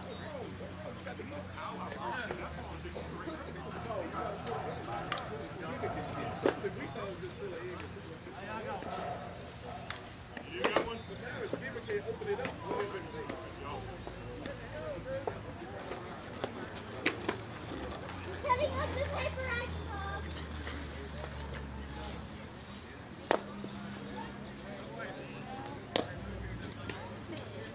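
Adult players call out to each other at a distance across an open outdoor field.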